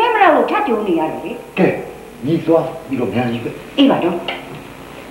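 An elderly woman talks with animation close by.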